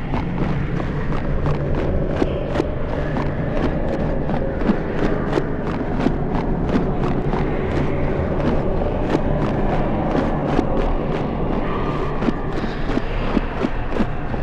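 Heavy footsteps thud at a steady walking pace.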